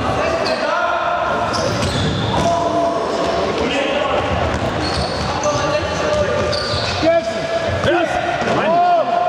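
Sports shoes squeak sharply on a hall floor.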